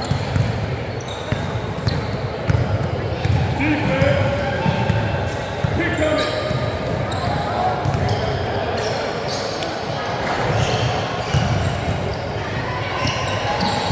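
Sneakers squeak on the gym floor.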